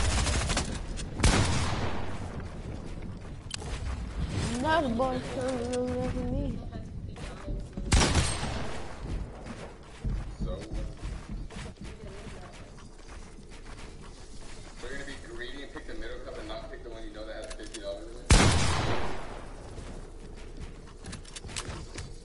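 Game gunshots and building sounds crack and thud sharply.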